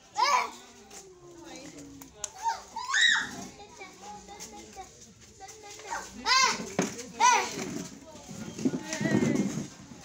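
Women talk nearby.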